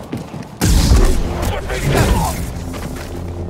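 A lightsaber strikes with loud crackling blows.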